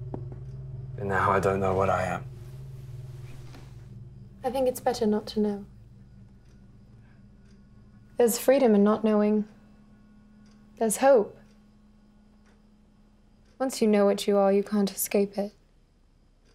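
A young woman speaks softly and closely, in short phrases.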